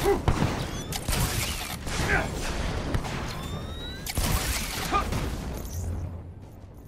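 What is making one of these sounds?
Jet thrusters roar and whoosh loudly.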